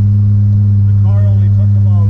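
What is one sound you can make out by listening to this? An elderly man speaks briefly up close.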